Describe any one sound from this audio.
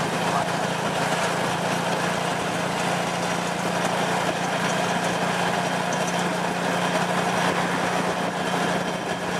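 Road noise and wind rush past an open tuk-tuk.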